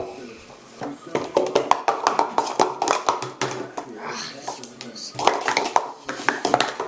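Plastic cups clatter and click rapidly as they are stacked and unstacked.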